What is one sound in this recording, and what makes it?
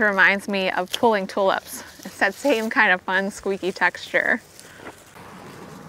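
Garden shears snip through plant stems.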